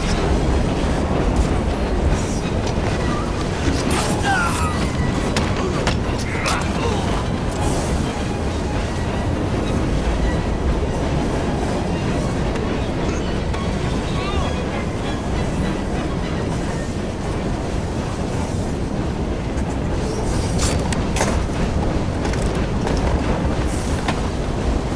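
A low steady rumble of a moving train carriage runs throughout.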